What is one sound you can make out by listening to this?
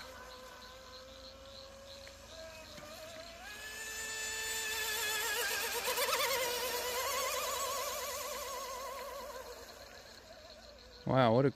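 A small model boat's motor whines across the water, rising in pitch and growing louder as it nears, then fading away.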